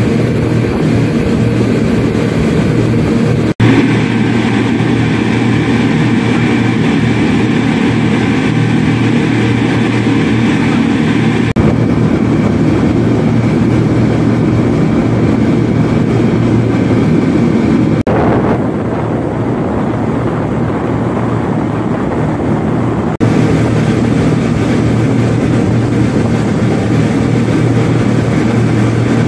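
Water churns and rushes past a speeding boat's hull.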